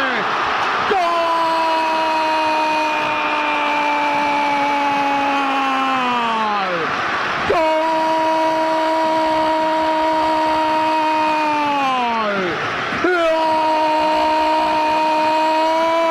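A man shouts long drawn-out cries into a microphone, again and again.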